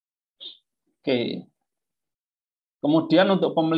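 A young man speaks calmly into a microphone, heard as if over an online call.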